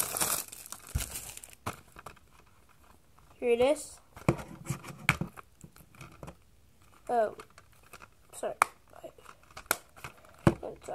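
A plastic case clicks.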